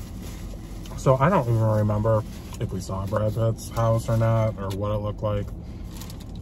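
A man talks close by, with animation.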